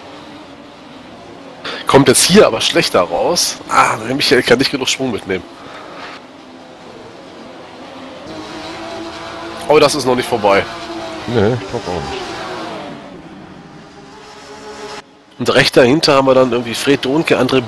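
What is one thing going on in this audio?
Racing car engines roar past at high speed.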